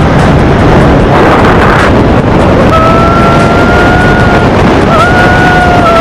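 Wind roars loudly and steadily across a microphone.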